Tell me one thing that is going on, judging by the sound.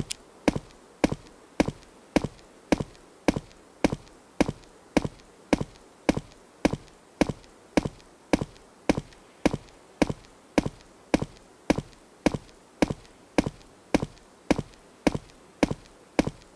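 Footsteps tread steadily through grass at a walking pace.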